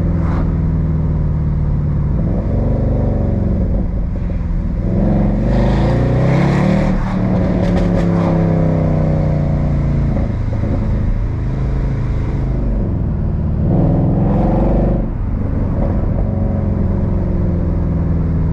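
Tyres roll steadily on a paved road.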